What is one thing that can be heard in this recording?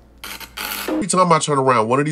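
An older man with a deep voice speaks with animation, heard through a phone recording.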